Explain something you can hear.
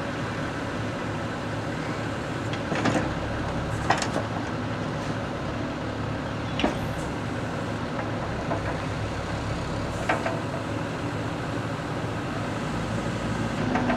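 An excavator's diesel engine idles with a steady low rumble.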